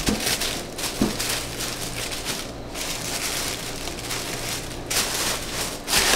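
Packing paper rustles and crinkles as it is folded into a box.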